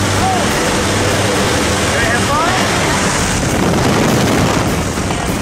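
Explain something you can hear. Wind roars loudly and steadily past the microphone.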